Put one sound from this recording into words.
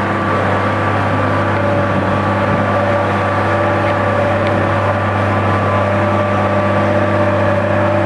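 A road roller's steel drum crunches over dirt.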